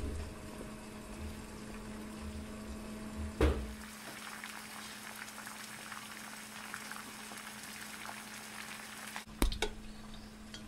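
A metal spoon clinks against the side of a pot.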